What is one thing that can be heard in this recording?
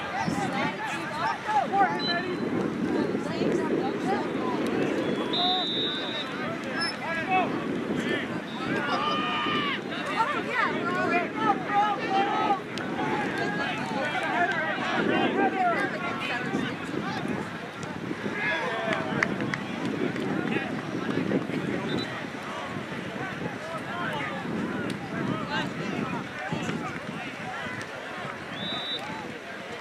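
A crowd of spectators and players shouts and calls out across an open field.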